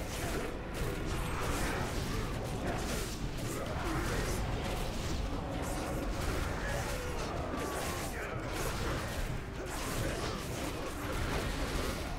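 Magic blasts and weapon strikes clash in a busy battle.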